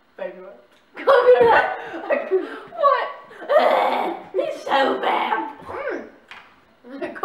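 A boy cheers and laughs excitedly.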